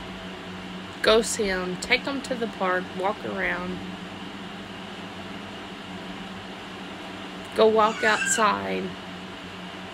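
A young woman speaks softly and close up, in short phrases.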